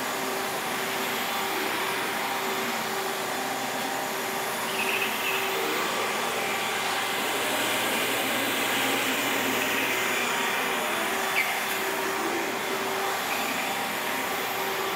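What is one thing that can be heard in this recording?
A floor scrubbing machine hums steadily as it moves across a wooden floor.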